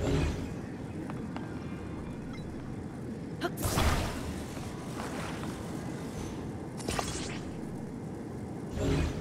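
Fire roars and lava rumbles steadily all around.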